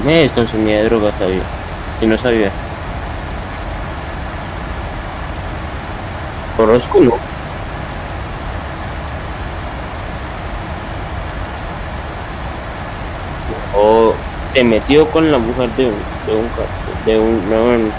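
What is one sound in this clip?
Jet engines hum steadily inside a cockpit.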